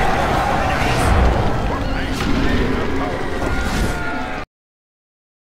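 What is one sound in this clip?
A triumphant chime rings out.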